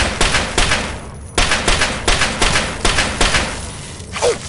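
A rifle fires in rapid bursts, with loud echoing shots.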